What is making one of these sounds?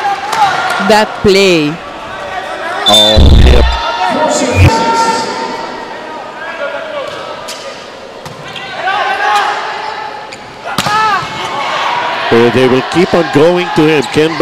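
A volleyball is struck hard, with sharp smacks echoing in a large hall.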